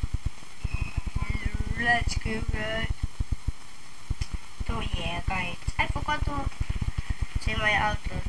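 A young boy talks close to a microphone.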